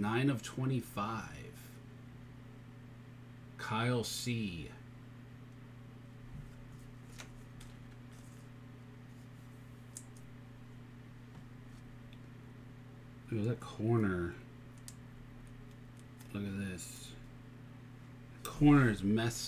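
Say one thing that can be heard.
Fingers handle a stiff card with faint rustles and taps.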